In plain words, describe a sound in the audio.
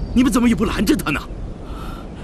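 A man speaks sternly, close by.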